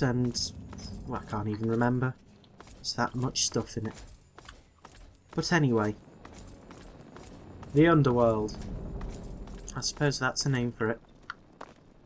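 Footsteps tread on a hard stone floor.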